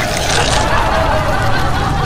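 A crowd of men and women laughs loudly.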